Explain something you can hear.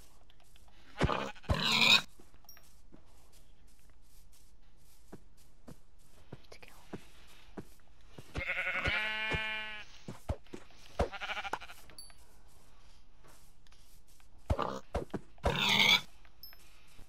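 A pig grunts close by.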